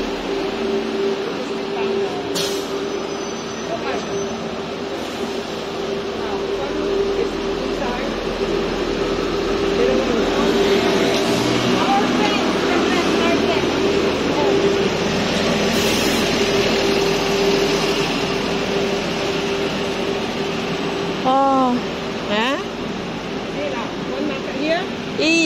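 Street traffic rumbles in the background.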